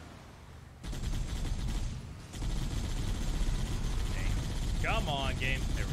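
A mounted machine gun fires in rapid bursts.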